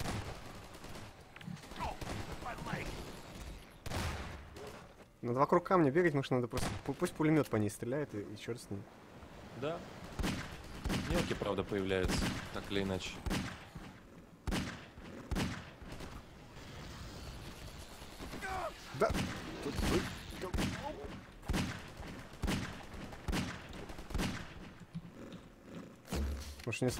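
Loud gunshots crack again and again.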